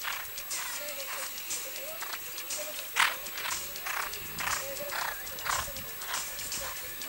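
A horse's hooves thud on grass at a canter.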